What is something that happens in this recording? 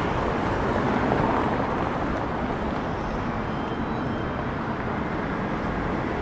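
Cars drive past on the street.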